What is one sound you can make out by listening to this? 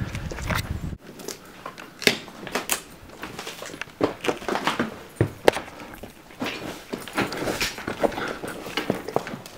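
Footsteps crunch over broken wood and debris.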